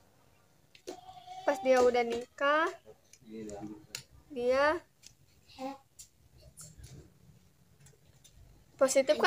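A young woman speaks close by, in a singing, melodic voice.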